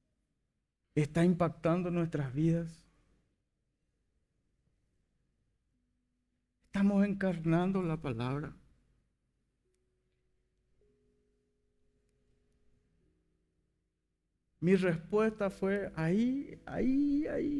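A man speaks with animation through a microphone, pausing between phrases.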